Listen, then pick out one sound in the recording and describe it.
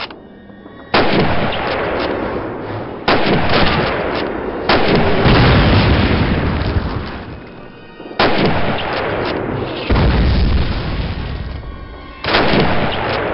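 A rifle fires loud shots that boom and echo away.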